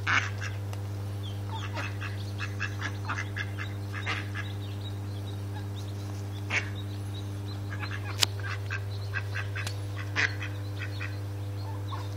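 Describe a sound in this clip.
Ducks quack and chirp close by.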